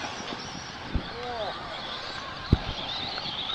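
Radio-controlled trucks thud as they land from jumps.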